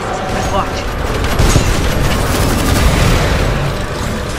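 Heavy gunfire pounds in rapid bursts.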